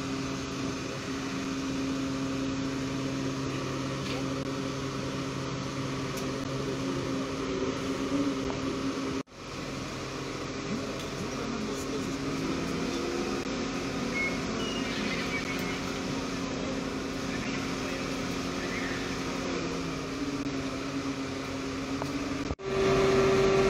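A crane engine hums steadily nearby.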